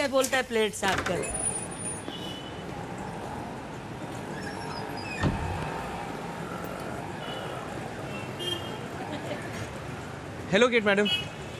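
Diners chatter in a busy café.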